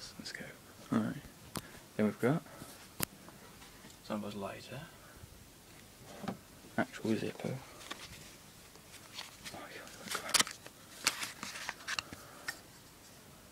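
Handling noises and knocks rustle close by.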